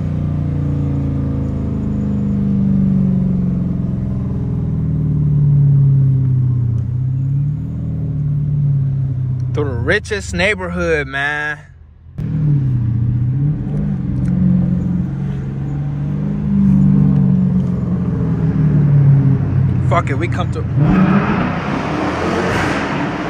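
A car engine rumbles deeply, rising and falling as the car accelerates.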